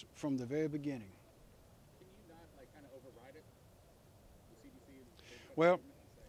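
An elderly man speaks calmly into a microphone outdoors.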